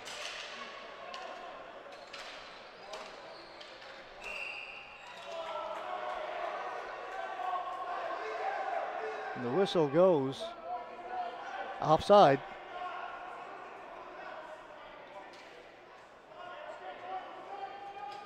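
A crowd of spectators murmurs in a large echoing arena.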